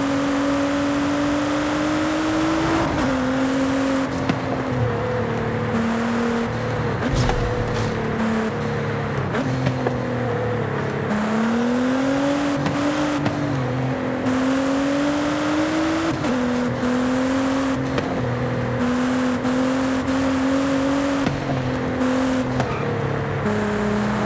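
A loud car engine roars, rising and dropping in pitch as it shifts gears.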